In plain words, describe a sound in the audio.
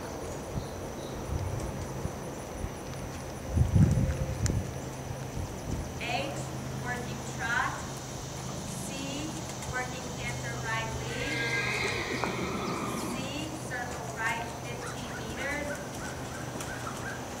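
A horse trots with soft, muffled hoofbeats on sand.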